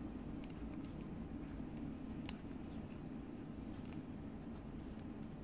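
Wooden knitting needles click softly against each other.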